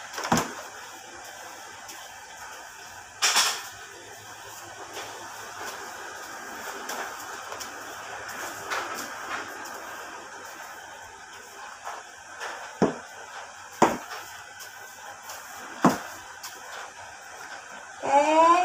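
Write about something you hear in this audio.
A broom sweeps across a hard floor with soft brushing strokes.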